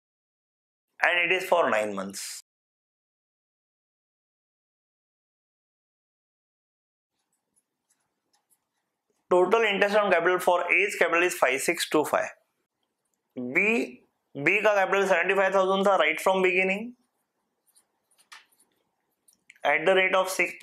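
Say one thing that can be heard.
A man explains calmly, as in a lecture.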